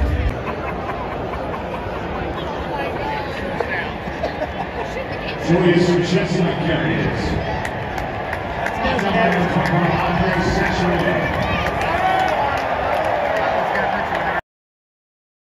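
A large stadium crowd cheers and roars outdoors.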